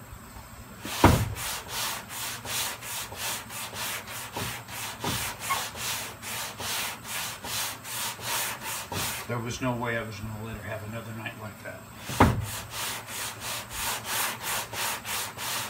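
A sanding block rasps back and forth over metal in quick, even strokes.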